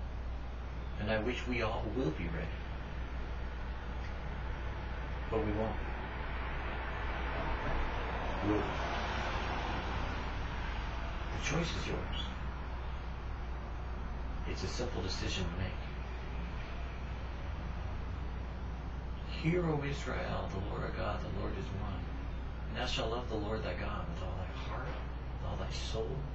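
An older man talks calmly at a distance, with pauses.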